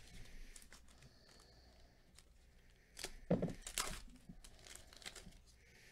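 A foil wrapper crinkles as it is handled.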